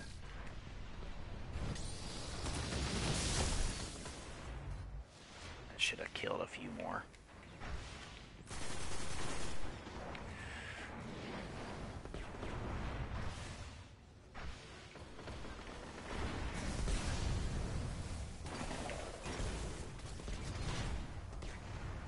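Gunfire and energy blasts crackle in a game.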